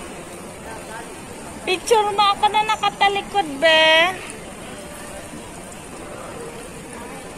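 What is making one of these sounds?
Water splashes steadily in a fountain.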